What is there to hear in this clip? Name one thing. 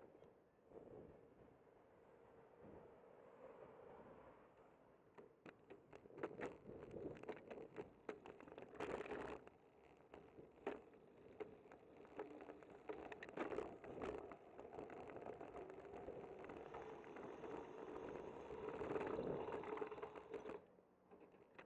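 Wind rushes and buffets against a microphone.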